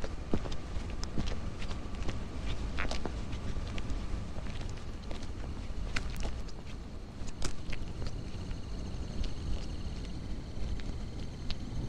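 Footsteps tap on pavement outdoors.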